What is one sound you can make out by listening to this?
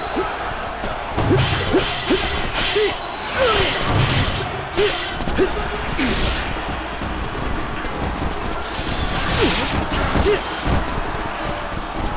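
Swords slash and clang in quick bursts.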